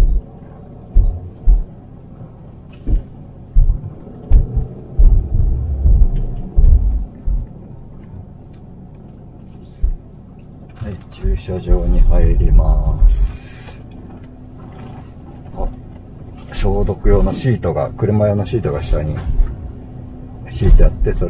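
A car engine hums as it drives slowly.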